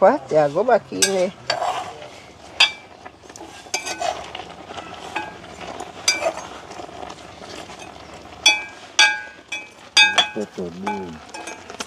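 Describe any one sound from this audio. A metal spoon clinks and scrapes against a metal pot.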